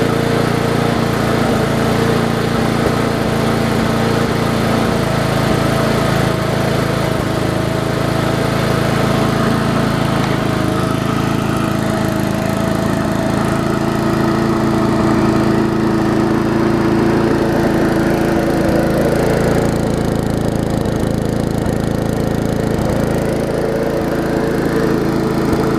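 A lawn mower engine runs steadily close by.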